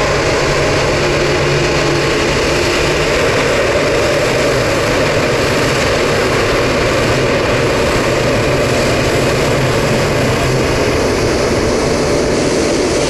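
A jet airliner's engines roar steadily as it taxis close by.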